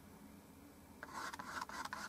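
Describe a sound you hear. A paintbrush dabs softly on canvas.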